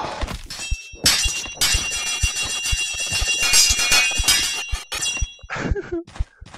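Metal blades clash and ring.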